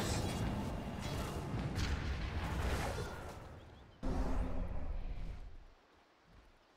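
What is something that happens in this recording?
Magic spells crackle and boom in a fast fantasy battle.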